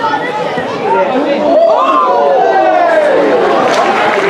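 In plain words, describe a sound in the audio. A crowd of spectators cheers loudly outdoors.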